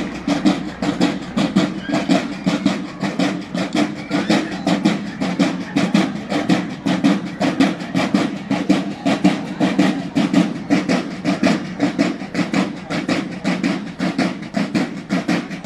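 Brass horns play a loud marching tune.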